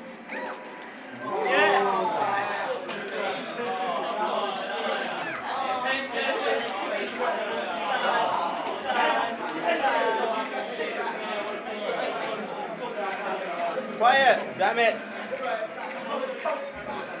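Fighting game sound effects and music play from a television speaker.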